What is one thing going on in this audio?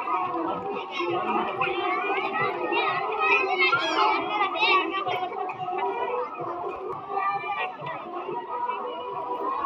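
A crowd of children and adults chatter and call out nearby outdoors.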